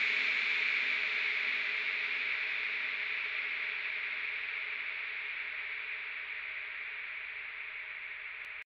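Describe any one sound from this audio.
A rushing electronic noise sweep plays from a mixer and slowly grows duller and quieter.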